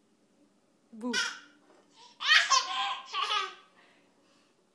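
A toddler laughs loudly nearby.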